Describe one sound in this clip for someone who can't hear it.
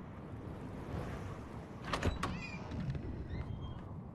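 A front door opens.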